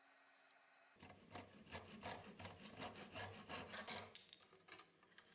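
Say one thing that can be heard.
A hand saw cuts wood with quick, rhythmic strokes.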